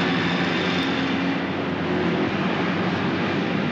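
A jeep engine rumbles as the vehicle drives off.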